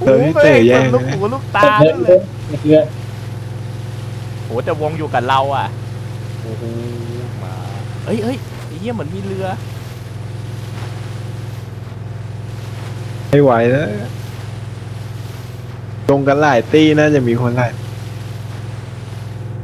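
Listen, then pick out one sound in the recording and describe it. Water sprays and splashes behind a speeding boat.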